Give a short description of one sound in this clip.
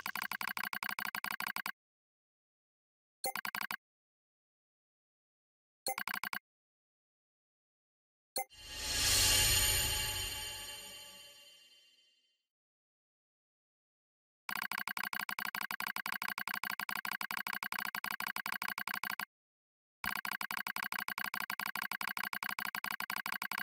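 Rapid electronic blips tick in quick bursts.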